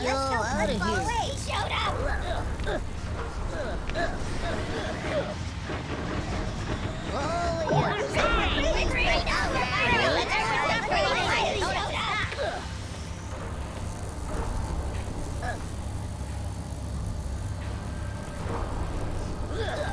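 An electric barrier crackles and buzzes.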